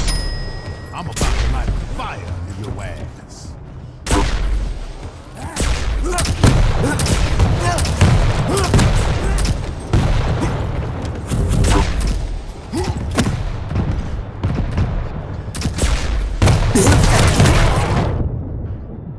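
Energy weapons fire in rapid bursts with loud zaps.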